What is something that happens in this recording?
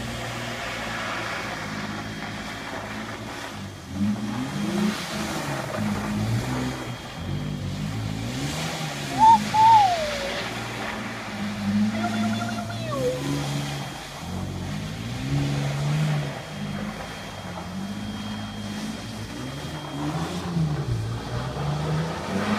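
Tyres crunch and slide on packed snow.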